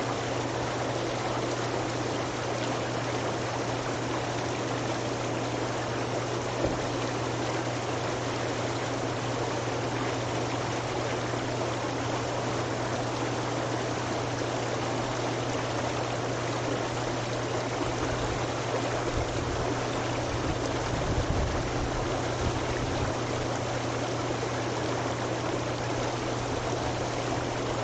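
A pump motor hums steadily.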